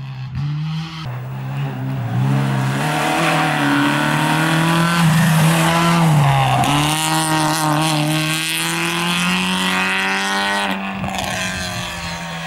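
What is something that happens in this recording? A rally car engine revs hard as the car speeds past and pulls away.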